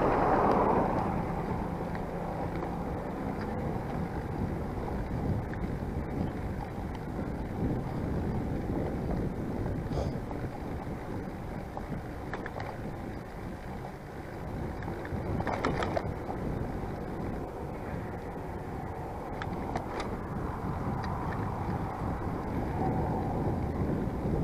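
Wind rushes steadily past while riding outdoors.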